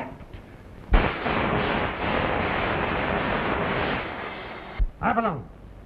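An electrical machine buzzes loudly and steadily.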